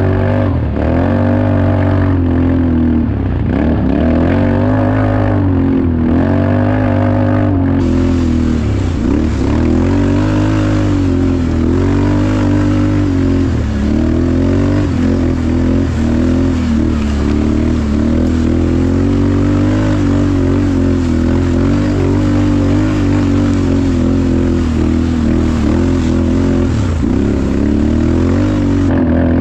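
Tyres crunch over dry leaves and dirt.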